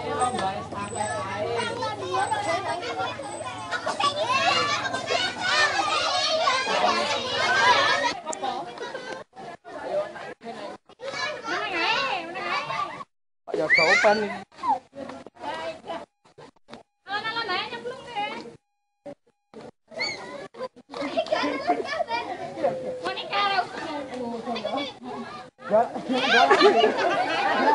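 Children shout and laugh excitedly close by.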